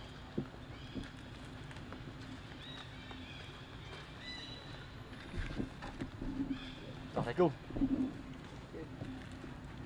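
A plastic bottle crinkles as a young monkey handles it.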